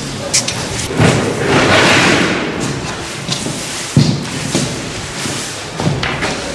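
A broom sweeps across a floor.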